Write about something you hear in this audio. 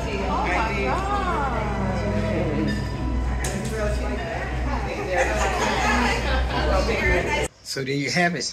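Several women chat and laugh together.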